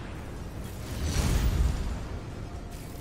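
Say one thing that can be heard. A heavy explosion booms close by.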